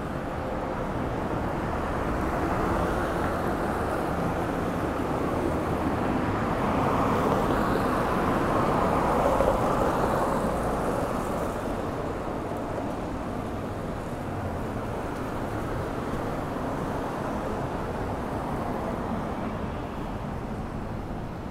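Cars drive by on a wet road, tyres hissing on the wet surface.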